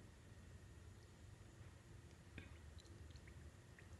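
Milk pours into a small glass bowl.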